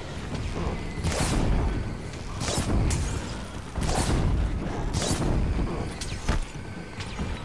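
Arrows whoosh sharply as a bow is fired several times.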